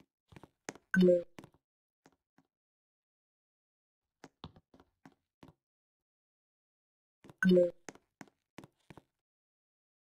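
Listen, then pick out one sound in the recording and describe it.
Light footsteps tap quickly on a hard surface.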